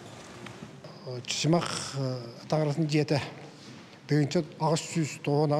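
An elderly man speaks calmly into a microphone close by.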